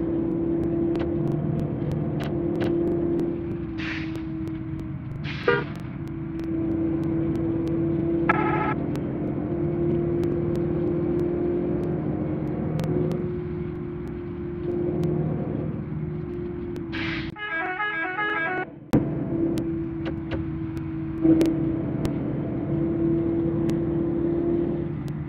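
A bus engine hums steadily.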